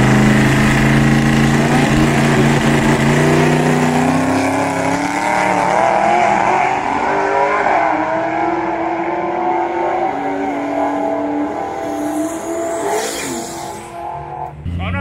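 A race car engine roars loudly and fades as it speeds away.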